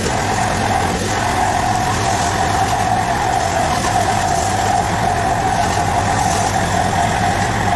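A pressure washer sprays with a loud, steady whine close by.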